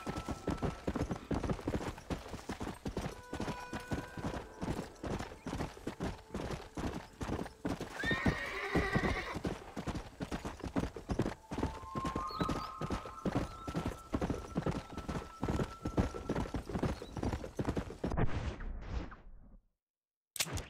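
Horse hooves gallop steadily over dry ground.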